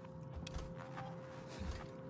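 A handheld tracking device beeps softly.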